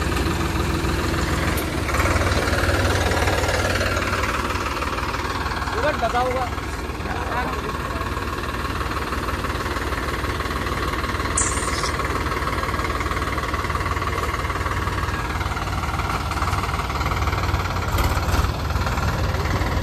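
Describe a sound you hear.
A tractor diesel engine rumbles steadily close by.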